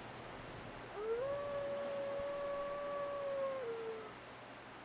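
A wolf howls in a long, steady tone.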